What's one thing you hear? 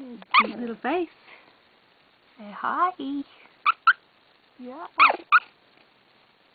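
Young puppies whimper and squeal in high, wavering cries.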